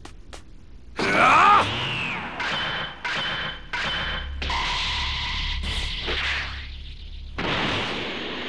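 An energy aura crackles and roars as a character powers up.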